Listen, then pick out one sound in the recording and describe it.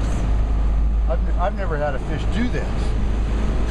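A middle-aged man speaks briefly and casually nearby.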